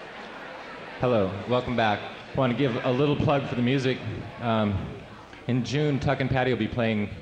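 A young man speaks into a microphone, heard through loudspeakers in a hall.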